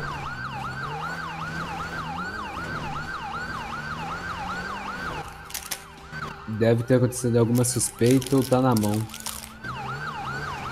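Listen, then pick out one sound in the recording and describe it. A police siren wails rapidly and steadily.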